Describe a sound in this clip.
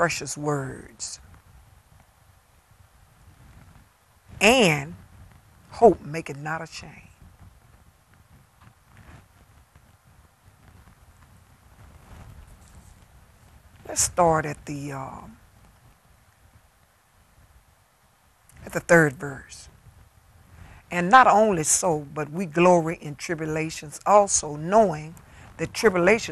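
A middle-aged woman speaks slowly and with feeling into a microphone, pausing often.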